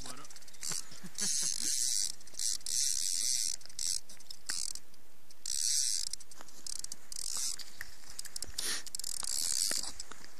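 A fishing reel is wound in with a whirring click.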